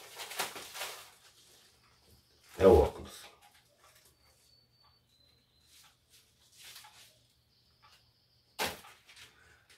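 A plastic wrapper crinkles in a man's hands.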